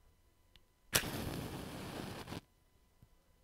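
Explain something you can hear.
A match flares with a loud hiss, then dies down.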